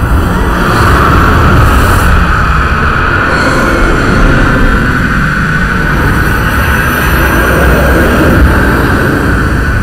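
A woman cries out loudly in anguish.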